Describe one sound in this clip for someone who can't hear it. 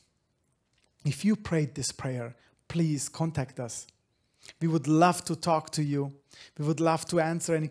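A man speaks calmly and clearly into a microphone, close by.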